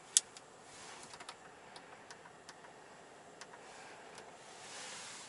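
Buttons on a car's centre console click.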